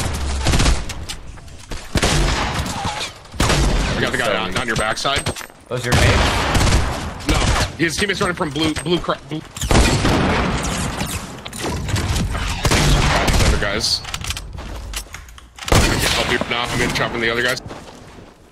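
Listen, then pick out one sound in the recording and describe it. A young man talks rapidly and with animation into a close microphone.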